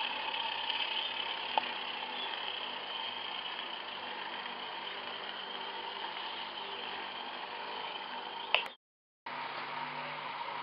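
Wagon wheels rattle along a model railway track.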